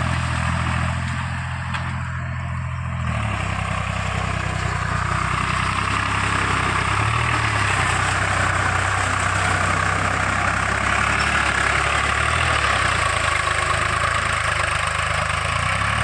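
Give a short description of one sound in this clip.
A tractor engine chugs steadily nearby.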